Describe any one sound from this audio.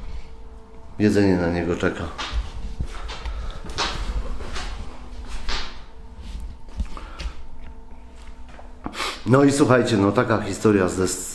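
A middle-aged man speaks with animation close to the microphone.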